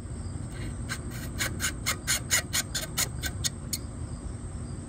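A metal hose clamp clicks rapidly as it is squeezed.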